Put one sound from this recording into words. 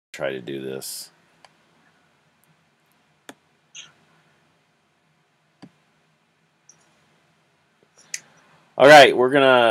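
A young man speaks briefly and calmly through an online call.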